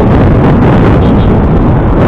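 A motorbike engine buzzes past close by.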